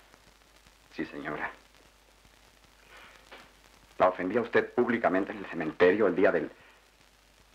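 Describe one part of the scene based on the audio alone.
A young man speaks quietly and earnestly nearby.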